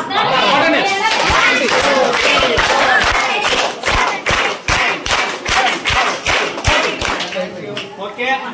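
Children clap their hands in rhythm.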